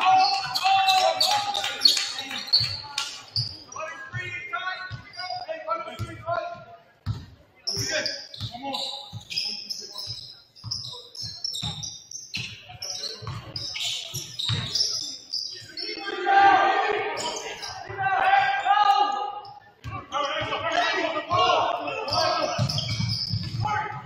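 A basketball bounces on the floor in quick thuds.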